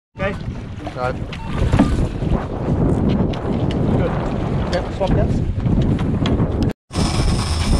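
Water splashes against a boat's hull.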